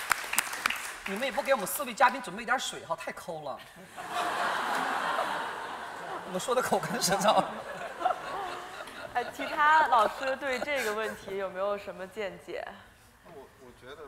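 A young woman speaks to an audience in a large hall.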